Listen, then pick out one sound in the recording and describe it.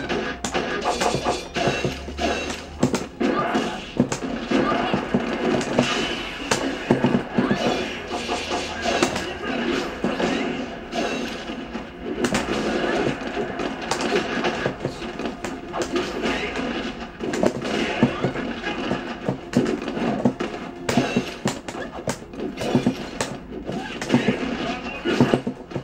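Music plays from a television speaker.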